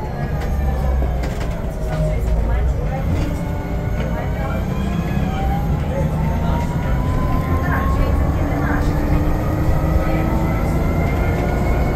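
A bus engine hums and whines steadily while driving.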